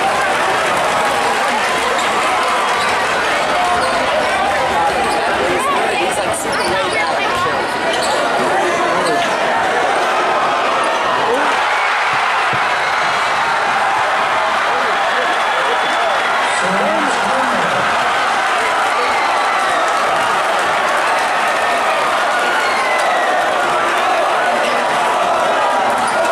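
A large crowd cheers and chatters loudly in an echoing gym.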